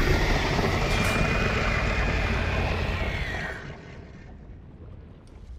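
A heavy blast rumbles and roars, then fades away.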